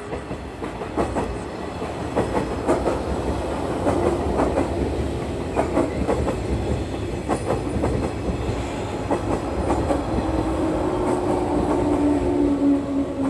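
Train wheels clack over the rails.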